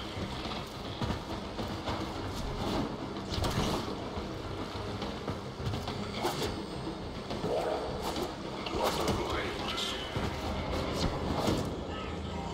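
Quick footsteps clank on metal as a runner leaps and climbs.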